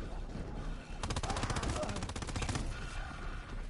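Gunshots rattle in rapid bursts.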